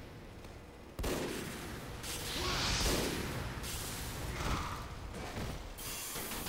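A flamethrower roars with a rushing hiss.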